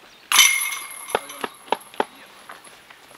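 A flying disc crashes into metal chains, which rattle and jingle.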